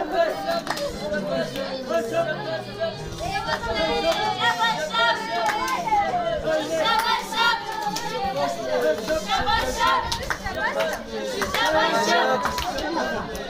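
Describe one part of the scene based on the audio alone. A crowd of people chatters and calls out.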